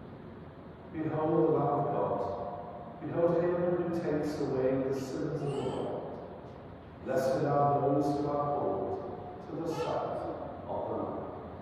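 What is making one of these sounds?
A man speaks slowly and solemnly through a microphone in an echoing hall.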